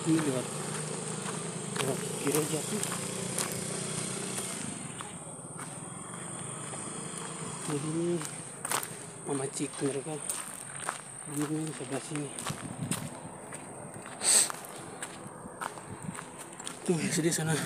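A man talks calmly and close to the microphone, outdoors.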